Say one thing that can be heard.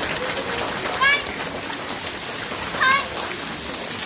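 A girl gives a short high shout.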